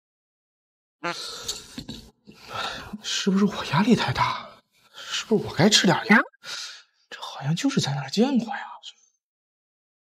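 A man talks to himself in a worried, troubled voice.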